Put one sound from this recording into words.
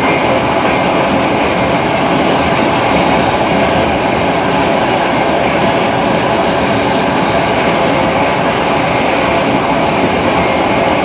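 A vehicle rumbles steadily while moving.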